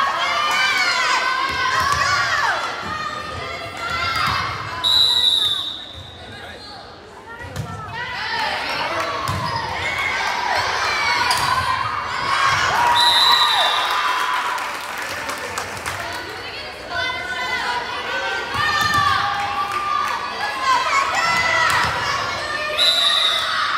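A volleyball is struck with dull thumps.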